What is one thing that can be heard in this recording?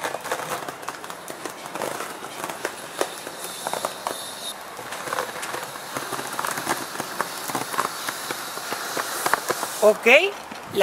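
Skateboard wheels roll and clatter on concrete.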